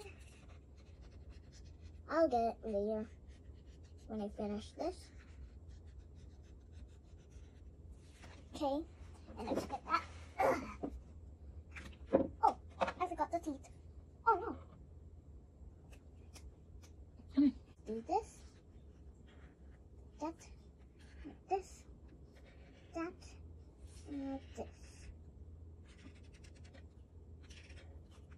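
A felt-tip marker squeaks and scratches on paper.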